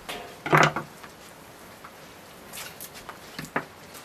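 A knife cuts through raw meat on a wooden board.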